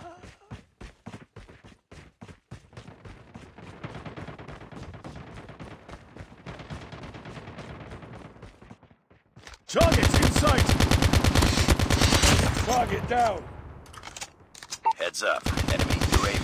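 Rapid gunfire rattles in quick bursts, growing much louder partway through.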